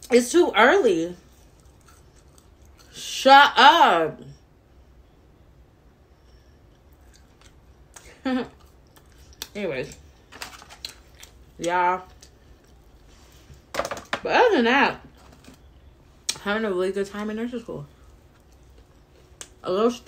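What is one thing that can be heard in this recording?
A young woman crunches on a crispy snack.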